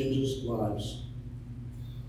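An older man speaks briefly through a microphone.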